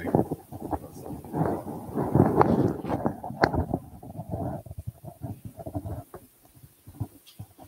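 A microphone rustles and bumps as it is handled.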